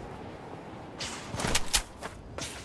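Footsteps crunch on the ground on landing.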